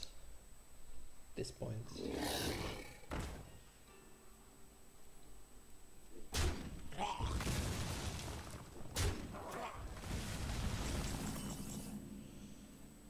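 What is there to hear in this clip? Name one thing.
Video game sound effects whoosh and crash as pieces attack.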